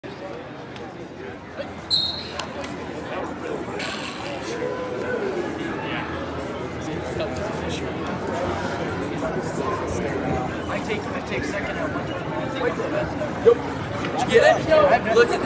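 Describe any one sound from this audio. A crowd in a gym chatters and cheers, echoing.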